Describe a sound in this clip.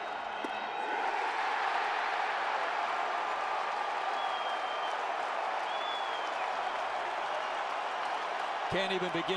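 A large crowd roars loudly after a pitch.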